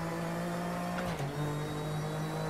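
A racing car engine dips briefly in pitch as the gear shifts.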